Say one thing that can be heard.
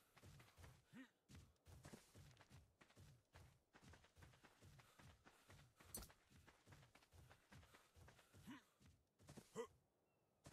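Footsteps crunch steadily on sand.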